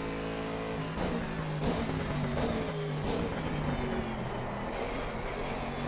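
A racing car engine drops in pitch as the gears shift down.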